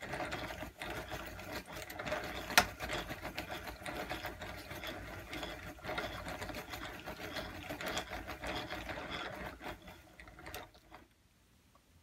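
A wooden yarn swift spins and rattles steadily.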